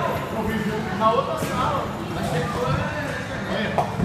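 Pins clatter as a bowling ball strikes them.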